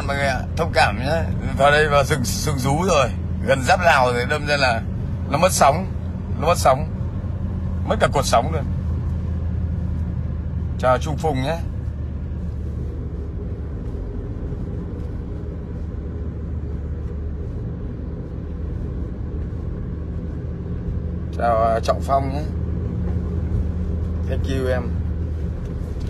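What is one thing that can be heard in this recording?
A car engine hums low and steadily.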